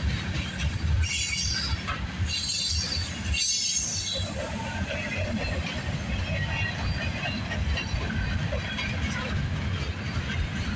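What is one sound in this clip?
Steel wheels squeal and screech against the rails.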